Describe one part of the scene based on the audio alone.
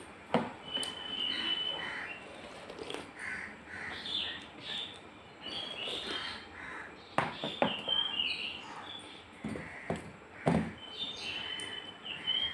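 A woman slurps and chews food close by.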